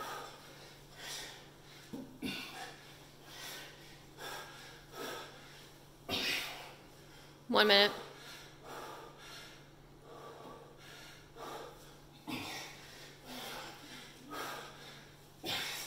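A man breathes out hard with each lift.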